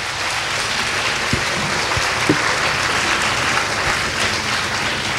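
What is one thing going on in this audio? A man speaks through a microphone in a large echoing hall.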